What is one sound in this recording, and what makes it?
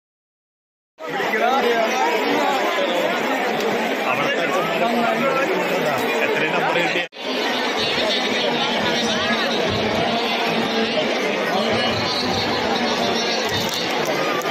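A large crowd of young women chatter and call out loudly outdoors.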